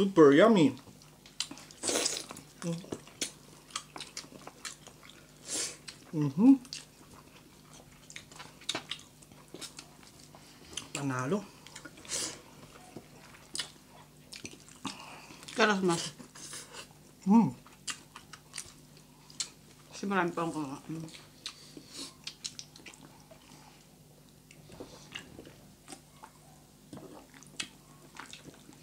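A man chews food noisily close by.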